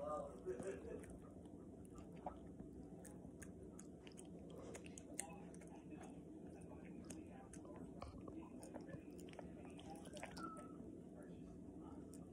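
A small dog licks and chews wet food.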